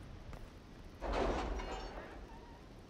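A heavy door creaks and rumbles open with a deep whoosh.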